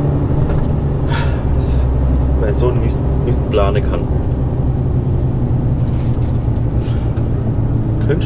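A heavy engine drones steadily from inside a moving cab.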